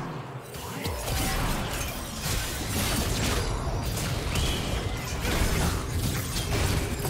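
Spell effects crackle and blast in a video game fight.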